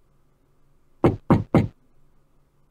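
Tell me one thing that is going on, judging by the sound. Three knocks sound on a wooden door.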